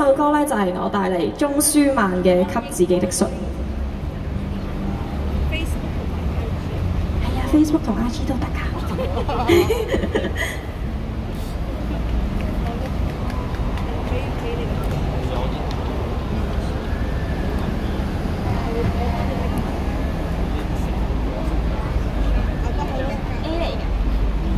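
A young woman sings into a microphone through loudspeakers outdoors.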